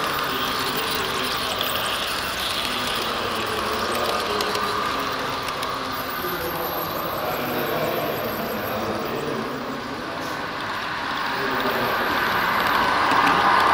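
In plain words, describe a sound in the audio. Model train wheels rumble and click steadily along the track.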